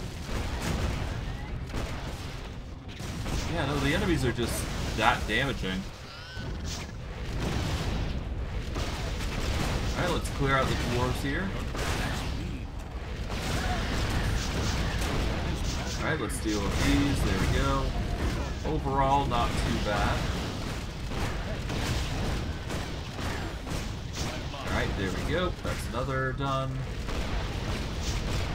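Game combat effects boom, crackle and clash throughout.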